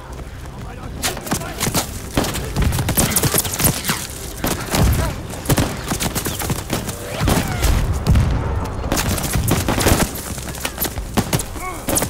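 Gunshots ring out in rapid bursts, echoing around.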